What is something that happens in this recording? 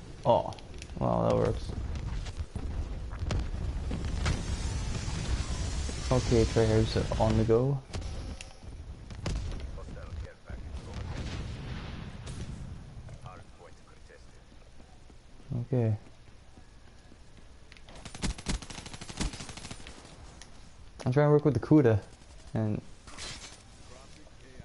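Gunshots crack in quick bursts from a video game.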